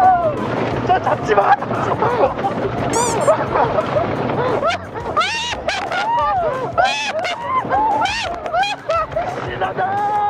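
A young man laughs and shouts.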